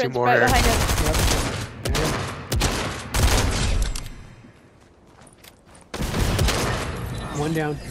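Gunfire rattles in loud, rapid bursts.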